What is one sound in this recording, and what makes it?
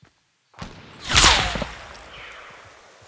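A rifle shot cracks loudly and rings out.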